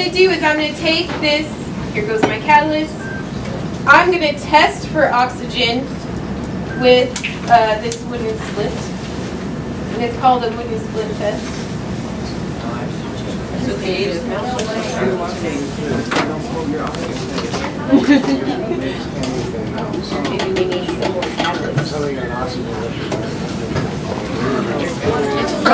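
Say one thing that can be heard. A young woman speaks clearly in a room.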